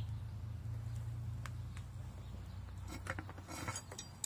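Hot metal crackles and pops as it cools in a mold.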